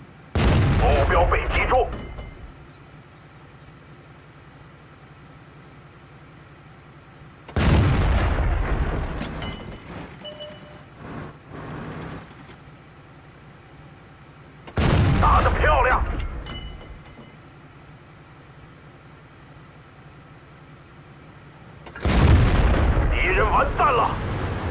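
A tank cannon fires with a sudden, heavy boom that rumbles away.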